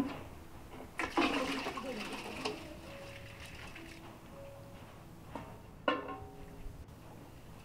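Water splashes as it is poured into a metal pot.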